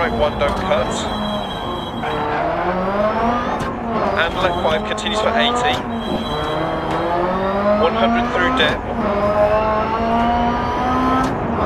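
A rally car engine revs hard, rising and falling in pitch as gears change.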